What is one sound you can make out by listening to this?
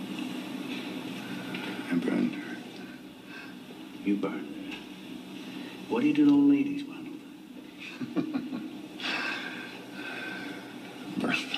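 An elderly man speaks calmly and warmly nearby.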